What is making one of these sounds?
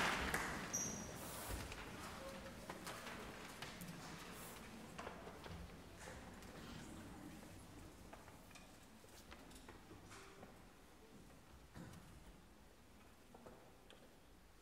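Small coughs and rustles from an audience fill a quiet, echoing hall.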